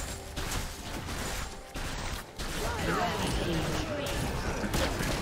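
Video game spells crackle and burst during a fight.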